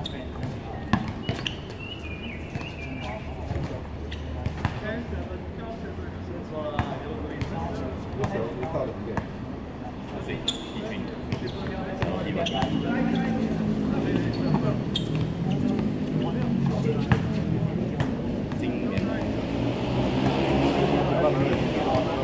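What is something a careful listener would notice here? Young men call out to each other during the game.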